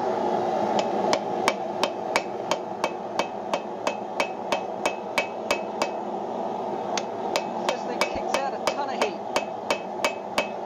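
A hammer rings sharply on hot metal over an anvil in a quick steady rhythm.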